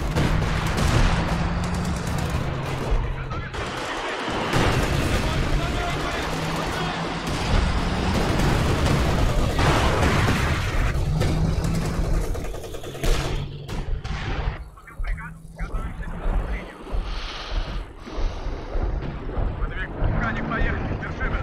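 A tank engine roars.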